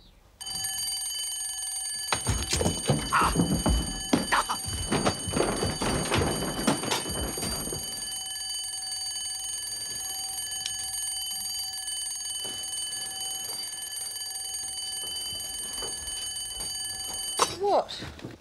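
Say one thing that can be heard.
An electric bell rings loudly and steadily, then stops abruptly.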